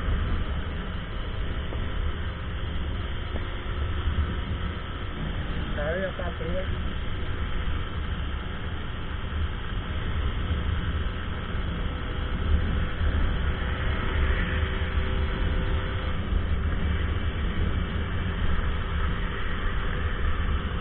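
A small four-stroke step-through motorcycle drones at full throttle.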